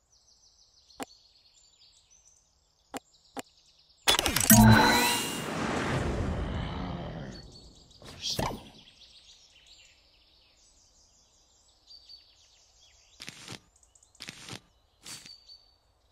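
Game menu buttons click and chime as options are tapped.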